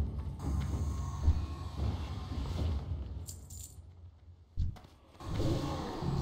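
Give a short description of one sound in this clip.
Magic spells whoosh and crackle amid a battle.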